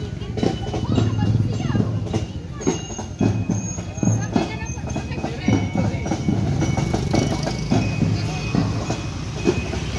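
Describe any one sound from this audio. A crowd of men and women murmur and chat outdoors.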